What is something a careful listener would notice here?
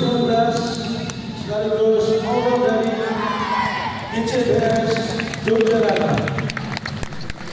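A group of children chant and cheer together loudly in a large echoing hall.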